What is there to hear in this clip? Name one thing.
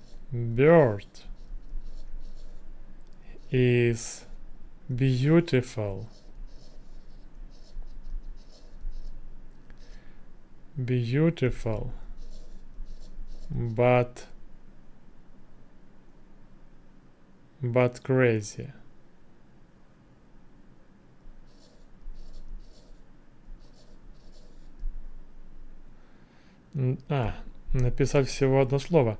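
A young man speaks slowly and calmly into a close microphone, in short phrases with pauses.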